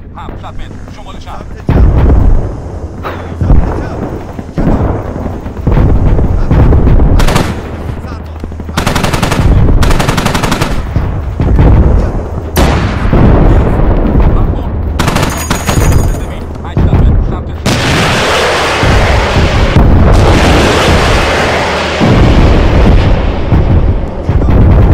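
Heavy explosions boom again and again.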